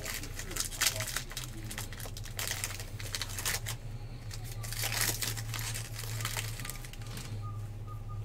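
A plastic wrapper crinkles and tears as it is pulled open.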